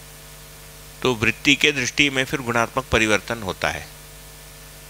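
A man speaks calmly and closely into a headset microphone.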